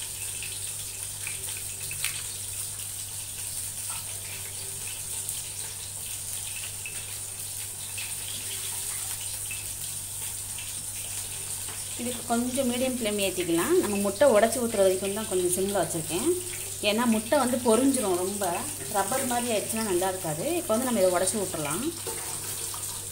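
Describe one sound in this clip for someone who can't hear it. Eggs sizzle softly in hot oil.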